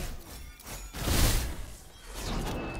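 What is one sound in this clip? A magical blast bursts loudly.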